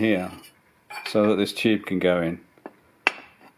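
A metal cup clinks down onto a metal cover.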